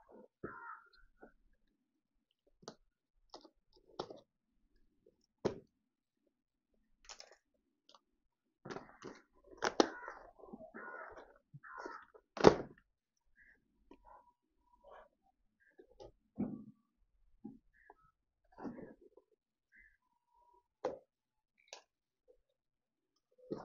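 Packing tape peels and tears from a cardboard box.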